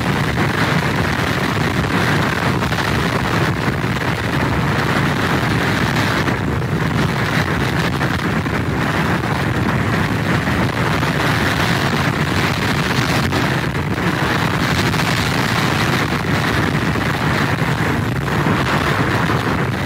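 Rain pours down steadily.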